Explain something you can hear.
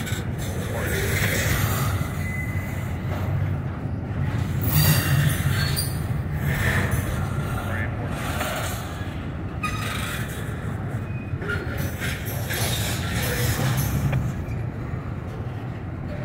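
A long freight train rumbles past close by, wheels clattering and squealing on the rails.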